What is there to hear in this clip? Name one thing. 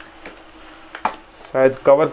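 A cardboard box lid knocks as it is set down.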